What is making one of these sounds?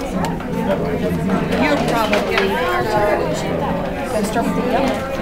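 Many people chatter at once in a busy indoor room.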